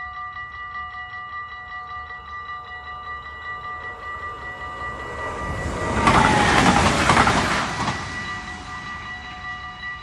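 A level crossing bell rings steadily and quickly.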